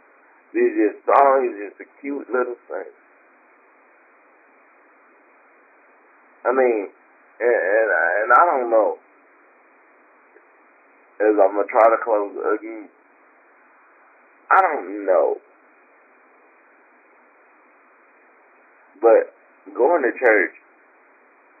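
A woman speaks calmly into a microphone, in short phrases with long pauses.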